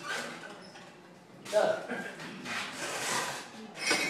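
A metal lid clanks down onto a furnace.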